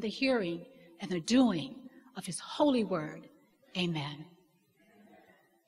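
A woman speaks calmly into a microphone in a reverberant hall.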